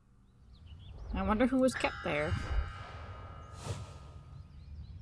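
A magical chime sparkles and rings out.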